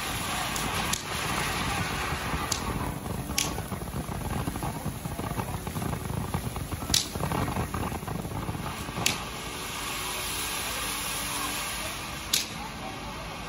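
Sharp pops and bangs burst from a firework now and then.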